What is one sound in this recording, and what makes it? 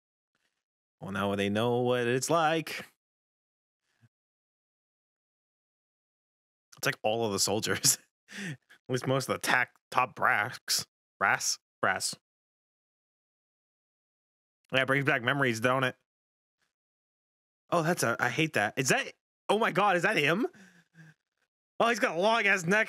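A young man talks with animation close into a microphone.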